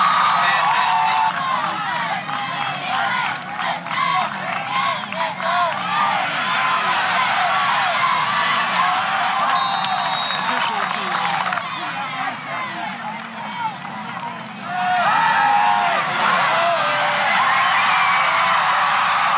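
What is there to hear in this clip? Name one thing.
A large crowd cheers and shouts in an open-air stadium.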